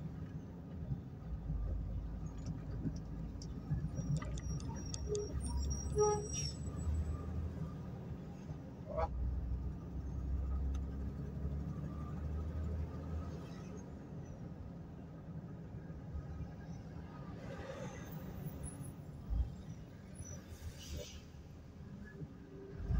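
A car engine hums steadily from inside as the car drives along a road.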